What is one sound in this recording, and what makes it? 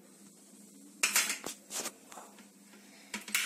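A small metal cup taps against a bowl.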